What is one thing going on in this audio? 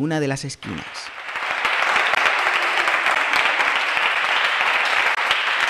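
A group of young people clap and applaud.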